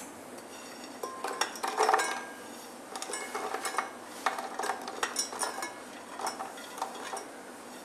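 Dishes and utensils clink softly.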